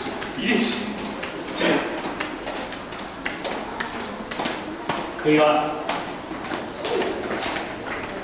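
People's footsteps come down the stairs nearby.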